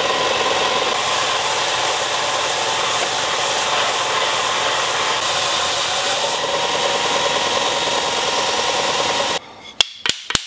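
A belt sander roars steadily as wood is pressed against it.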